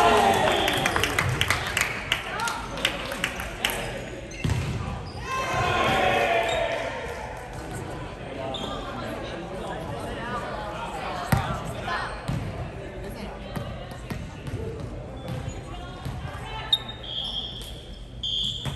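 A volleyball thuds as players hit it.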